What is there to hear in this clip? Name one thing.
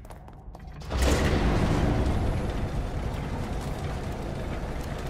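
A metal gate rumbles and clanks loudly.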